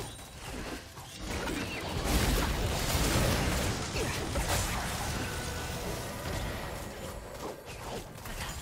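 Spell effects crackle and burst during a video game battle.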